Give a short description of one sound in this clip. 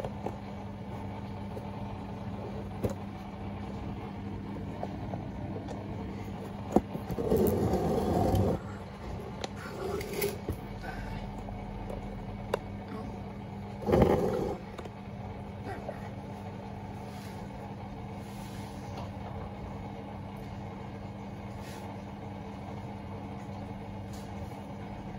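Water and suds slosh inside a washing machine drum.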